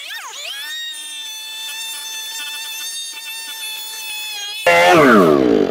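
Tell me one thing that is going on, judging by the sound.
A chainsaw roars as it cuts through wood.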